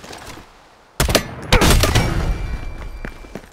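Rifle shots ring out loudly.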